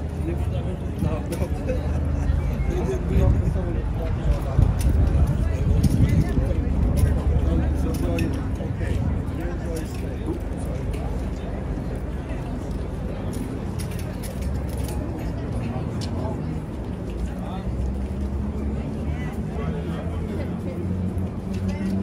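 A horse's bridle jingles and clinks as the horse moves its head.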